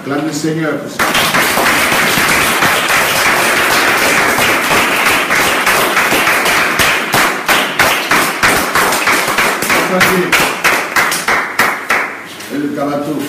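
Children clap their hands rapidly.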